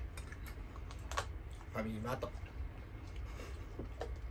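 A spoon clinks against a bowl.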